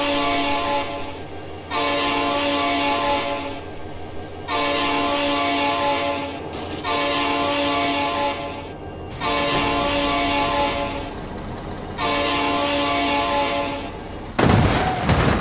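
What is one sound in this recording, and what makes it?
A train horn blows in long repeated blasts.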